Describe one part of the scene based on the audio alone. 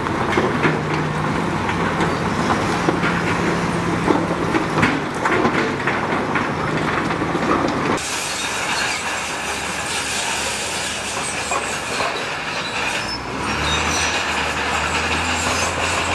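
Rocks rattle and crash as a dump truck tips its load.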